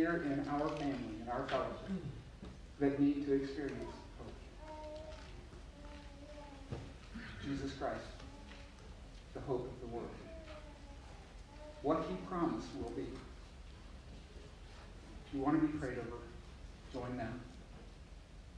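An older man speaks with pauses into a microphone in a large room.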